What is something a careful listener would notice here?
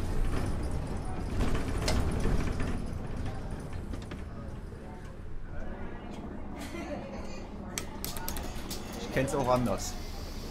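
A bus engine rumbles as the bus drives along.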